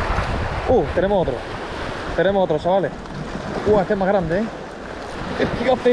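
A fishing reel clicks as it winds in line.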